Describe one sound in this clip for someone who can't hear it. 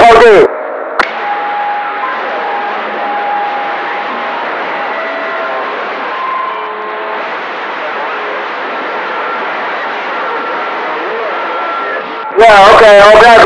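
A radio hisses with steady static, with faint tones drifting through it.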